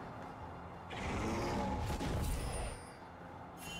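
Magical spell effects whoosh and swell loudly, then fade.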